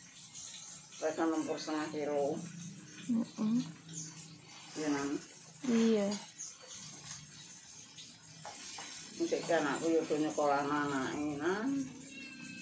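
An elderly woman talks calmly close by.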